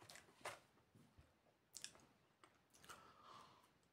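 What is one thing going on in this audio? A young man bites into a crisp biscuit with a crunch.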